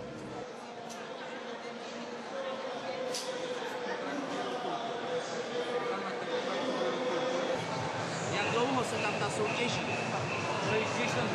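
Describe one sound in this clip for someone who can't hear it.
A crowd murmurs in a large busy hall.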